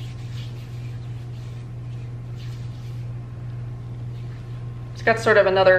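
Hands rub softly against bare skin.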